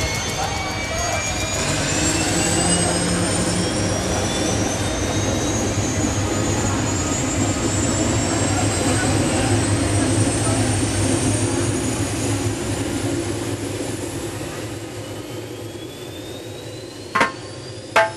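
A helicopter's engine whines high and slowly rises in pitch.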